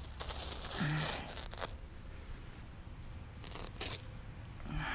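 A blade slices through plastic sheeting.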